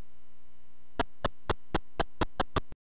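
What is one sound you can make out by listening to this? A video game plays quick, evenly spaced electronic ticks.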